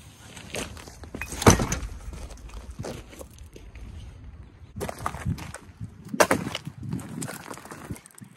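Stones crunch under footsteps on gravel.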